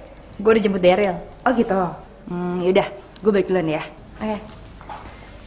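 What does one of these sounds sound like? A second young woman talks, close by.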